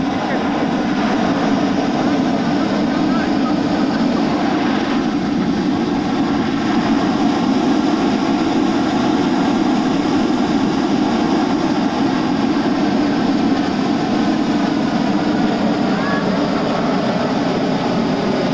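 A hot air balloon burner roars steadily close by.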